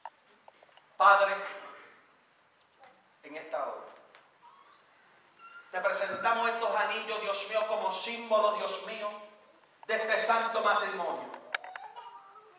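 A middle-aged man preaches with passion through a microphone in an echoing room.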